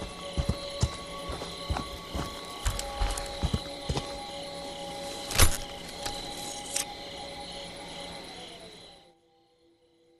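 Heavy footsteps crunch through leaves and undergrowth.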